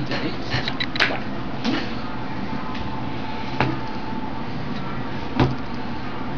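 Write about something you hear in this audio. Cards tap and click on a wooden table.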